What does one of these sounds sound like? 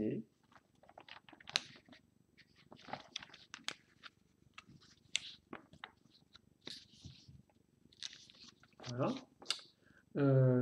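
Paper pages rustle and flap as a magazine is flipped through quickly.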